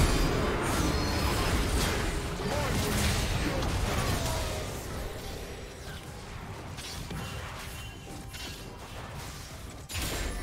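Spell blasts and hits crackle and thud in a fast game fight.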